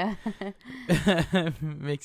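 A man laughs softly close to a microphone.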